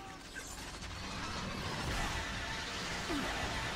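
Loud blasts and explosions rumble.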